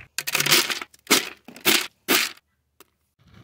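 Feed pellets rattle into a plastic bucket.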